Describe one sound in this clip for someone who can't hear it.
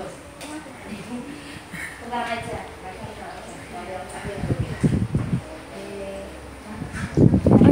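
A woman talks calmly to young children nearby.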